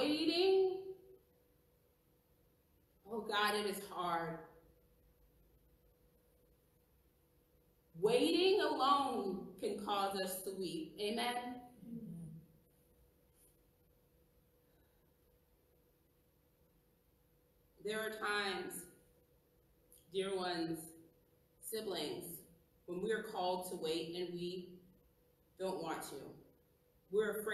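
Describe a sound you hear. A woman speaks calmly and slowly, with long pauses.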